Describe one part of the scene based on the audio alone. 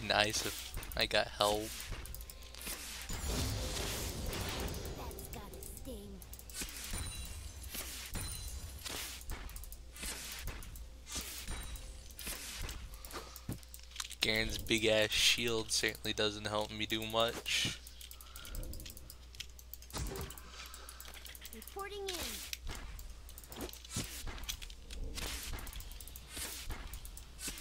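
Video game fight sounds of strikes and spell effects ring out in quick bursts.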